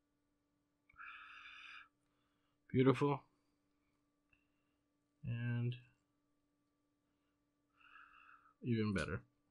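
A soldering iron hisses faintly against metal.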